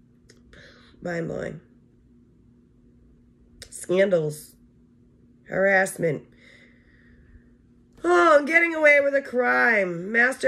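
A woman speaks slowly and thoughtfully close by, pausing between phrases.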